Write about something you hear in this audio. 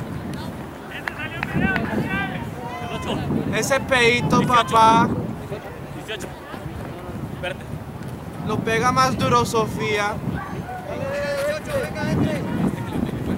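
Young men shout to each other across an open playing field outdoors.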